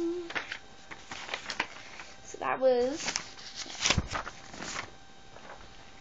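A young girl speaks briefly close to the microphone.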